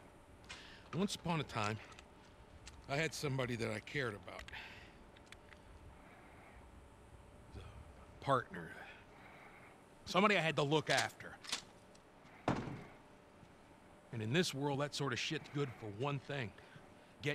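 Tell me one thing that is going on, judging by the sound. A man speaks in a low, gravelly voice, calmly and close by.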